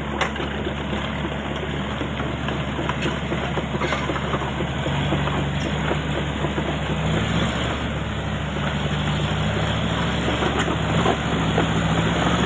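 Tyres churn through mud.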